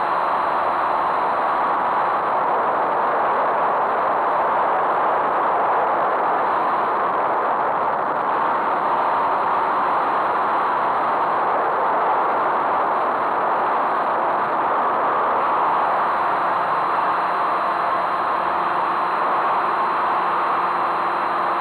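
A small electric motor whines steadily as a model aircraft flies.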